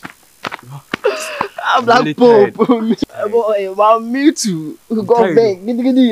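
A second young man laughs and talks excitedly.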